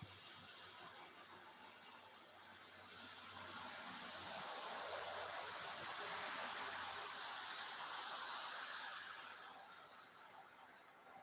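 Wind blows outdoors through bare trees, swelling and then easing.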